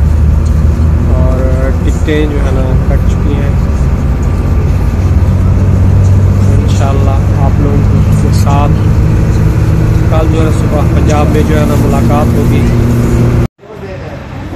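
A bus engine drones low and steady.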